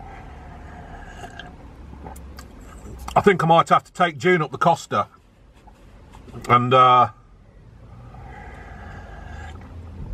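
A middle-aged man slurps a drink.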